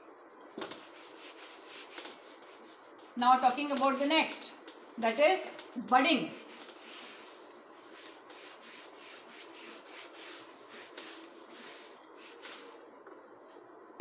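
A duster rubs across a whiteboard.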